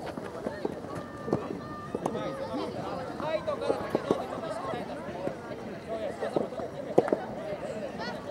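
Young girls shout and call out to each other across an open field.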